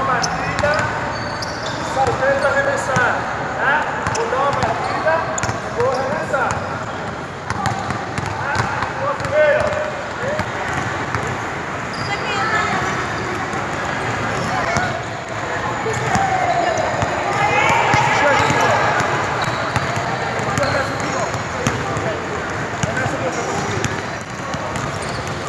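Basketballs bounce on a hard court.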